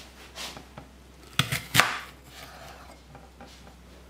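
A knife chops through an apple onto a cutting board.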